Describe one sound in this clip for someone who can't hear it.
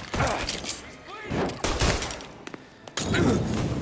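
Pistol shots ring out and echo through a large hall.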